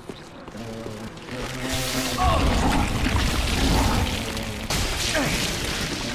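A large creature growls and roars.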